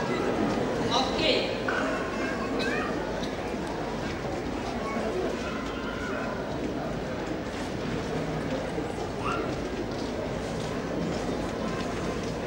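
A woman speaks with animation through a microphone over loudspeakers outdoors.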